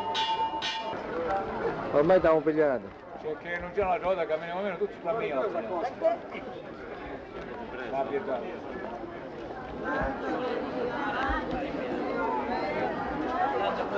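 A brass band plays a march outdoors.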